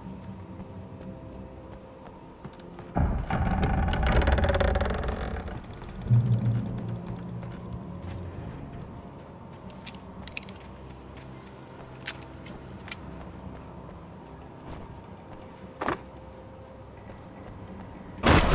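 Footsteps thud on wooden boards and then on soft ground.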